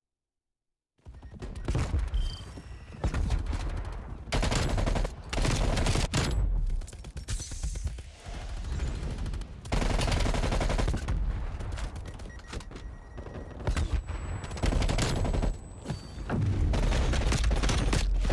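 A heavy machine gun fires in rapid, loud bursts.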